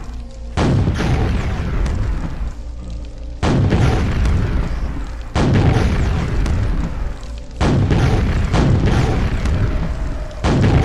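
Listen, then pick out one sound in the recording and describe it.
A shotgun fires loud blasts that echo off stone walls.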